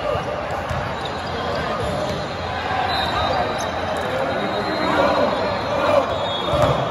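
Young players in a huddle talk and chant together loudly.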